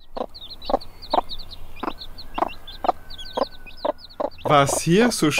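A chick peeps in quick, high chirps.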